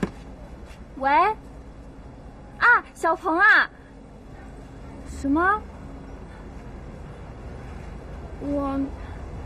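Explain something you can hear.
A young woman speaks into a phone with animation, close by.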